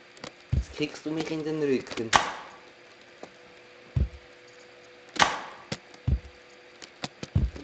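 A pogo stick bounces with repeated dull thuds.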